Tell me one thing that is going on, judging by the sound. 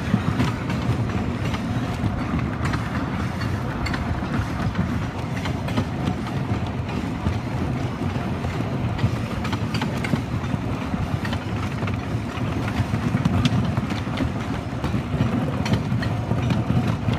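Wooden track creaks and knocks under a roller coaster car.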